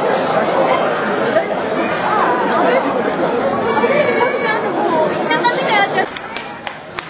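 A dense crowd of men chatters loudly outdoors.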